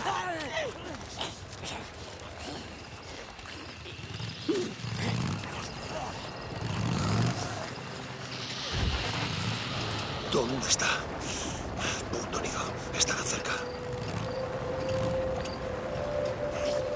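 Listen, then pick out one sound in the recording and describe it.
Tyres crunch on gravel and dirt.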